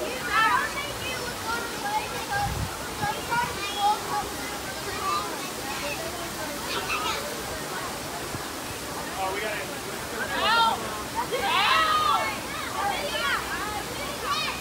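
Children shout and call out excitedly nearby outdoors.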